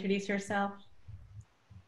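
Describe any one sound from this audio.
A woman speaks briefly over an online call.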